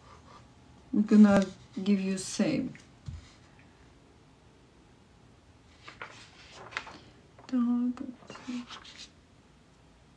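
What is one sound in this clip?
A woman speaks close by in short bursts, with pauses.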